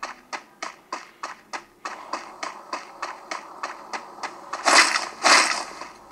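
A video game character's running footsteps tap through a phone's speaker.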